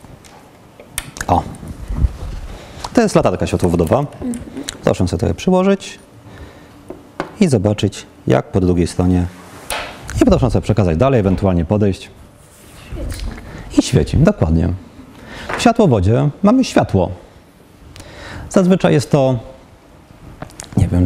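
A man speaks calmly in a room with slight echo.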